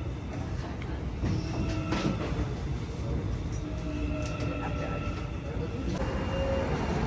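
A subway train hums and rumbles as it runs.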